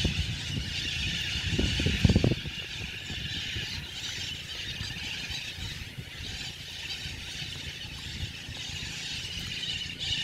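A flock of birds chirps and calls overhead.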